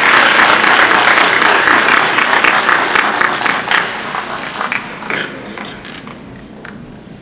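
A crowd applauds in a large echoing hall, then the clapping fades away.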